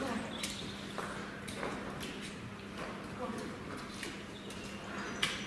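Cattle hooves clop and scrape on a hard floor in an echoing shed.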